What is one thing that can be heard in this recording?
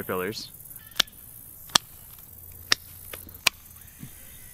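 Garden shears snip plant stems with sharp clicks.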